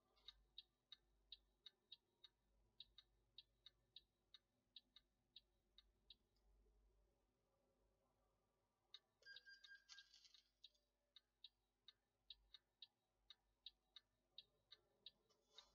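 A turn signal ticks in a quick, steady rhythm.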